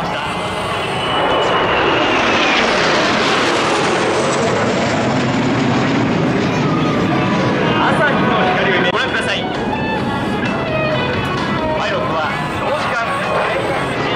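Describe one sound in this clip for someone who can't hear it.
Jet engines roar overhead and sweep past with a falling pitch.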